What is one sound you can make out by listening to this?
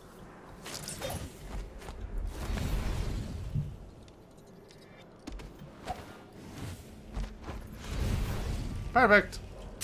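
A magical whoosh sweeps past.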